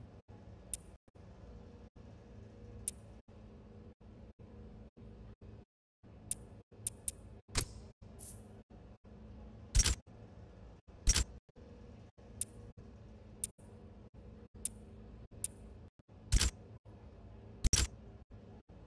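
Short electronic menu clicks and whooshes sound as selections change.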